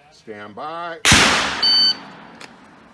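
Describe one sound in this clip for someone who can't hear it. A shot timer beeps sharply.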